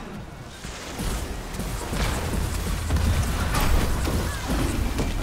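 Magic blasts and weapon strikes crackle and thump in a fight.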